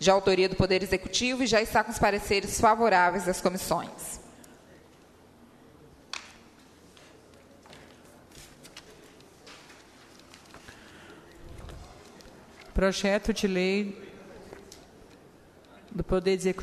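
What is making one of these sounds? A woman speaks into a microphone in a steady, reading-out voice.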